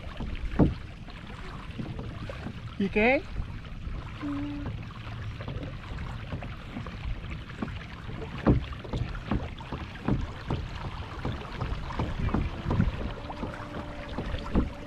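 A paddle dips and splashes in calm water.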